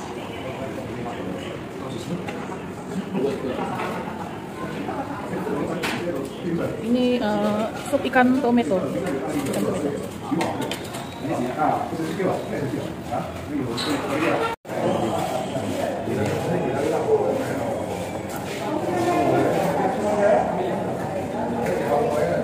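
Adults chatter and murmur all around in a busy room.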